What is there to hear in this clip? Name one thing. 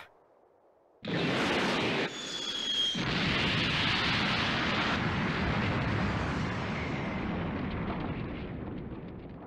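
A loud explosion booms and rumbles, slowly fading.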